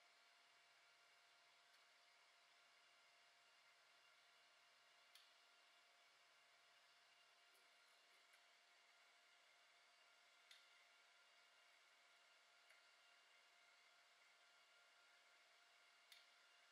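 A 3D printer's stepper motors whir with a steady, high hum.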